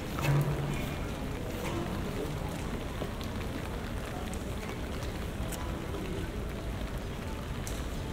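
Light wind blows outdoors.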